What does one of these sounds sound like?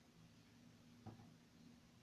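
A microwave door clunks shut.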